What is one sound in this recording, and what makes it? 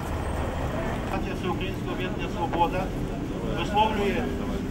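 A middle-aged man speaks loudly through a megaphone, heard from close by.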